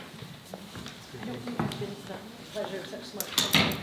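Footsteps knock on a wooden floor as people stand up.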